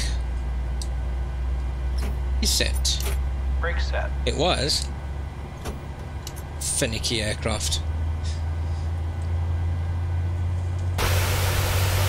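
Jet engines hum in a low, steady drone.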